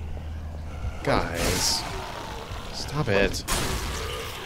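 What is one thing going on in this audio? Zombies snarl and groan nearby.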